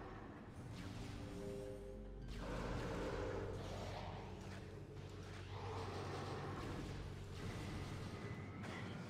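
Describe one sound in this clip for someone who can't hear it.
Electronic video game sound effects hum, whoosh and blast throughout.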